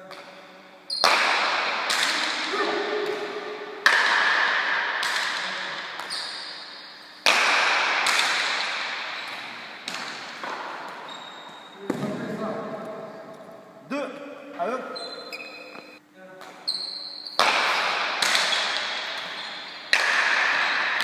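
A hard ball smacks against a wall and bats, echoing loudly around a large hall.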